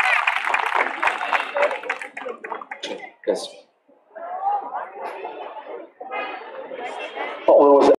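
A choir of young men and women sings together through loudspeakers.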